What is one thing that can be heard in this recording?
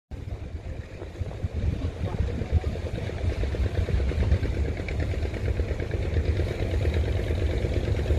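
Water splashes at a boat's bow.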